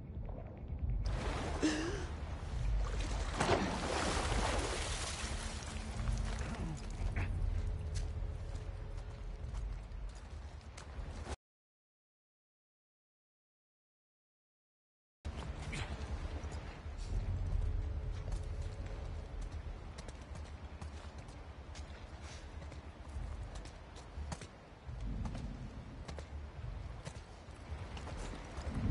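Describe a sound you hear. Footsteps shuffle and crunch over debris.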